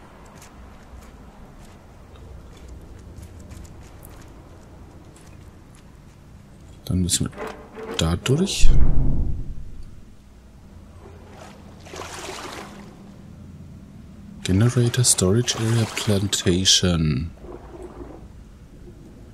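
Water bubbles and swirls softly underwater.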